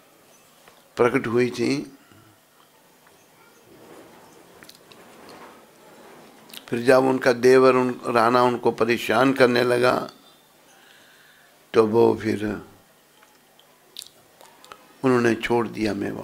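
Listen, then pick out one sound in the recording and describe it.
An elderly man sings into a microphone in long, wavering phrases.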